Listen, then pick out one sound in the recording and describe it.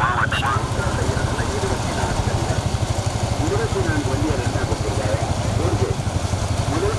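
Bulls' hooves clatter on asphalt at a gallop.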